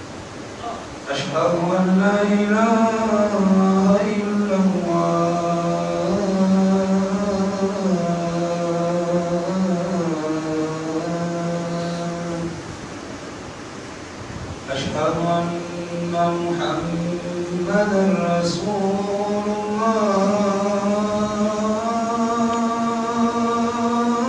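A man chants in long, drawn-out melodic phrases through a loudspeaker, echoing in a large hall.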